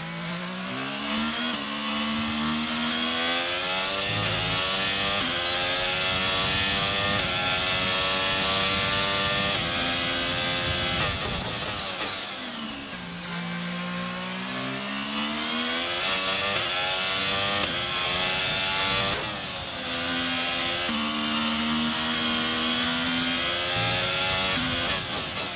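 A racing car engine screams as it climbs through the gears, dropping in pitch with each shift.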